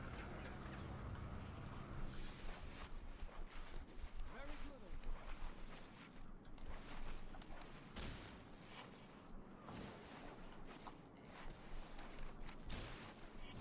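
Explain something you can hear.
Soft thuds of landing and climbing sound.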